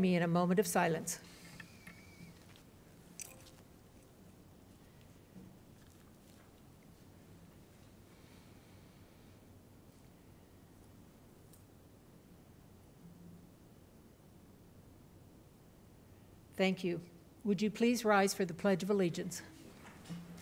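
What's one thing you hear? An elderly woman speaks calmly through a microphone.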